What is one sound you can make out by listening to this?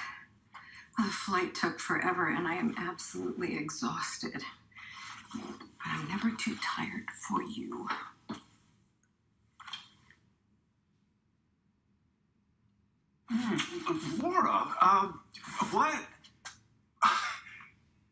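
A middle-aged woman speaks with emotion, close by.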